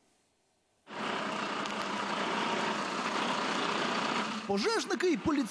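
A fire truck engine idles.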